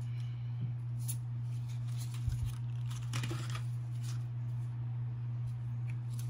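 A card wrapper crinkles and rustles in a boy's hands.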